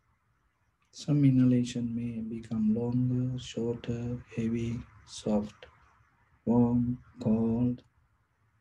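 A man chants slowly and steadily in a low voice, close to a microphone.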